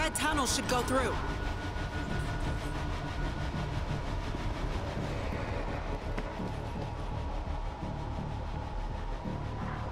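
Footsteps thud steadily along a hollow metal tunnel.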